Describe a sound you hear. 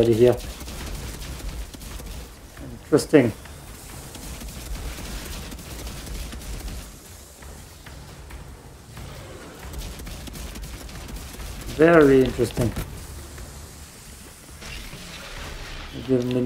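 Gunfire and blasts from a video game play steadily.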